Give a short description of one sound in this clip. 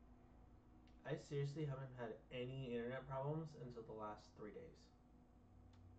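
A young man speaks with animation into a headset microphone.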